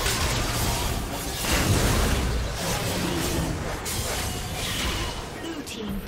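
Magic blasts and weapon hits crackle in a fast fight.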